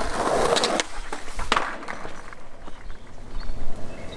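A skateboard lands hard with a clack.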